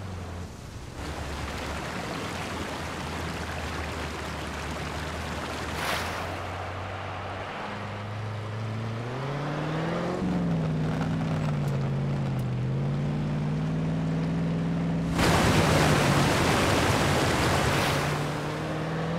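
Water splashes and sprays loudly under tyres.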